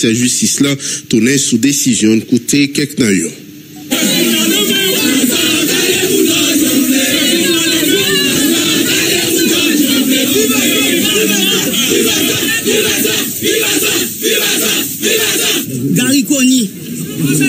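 A man speaks steadily into a close microphone.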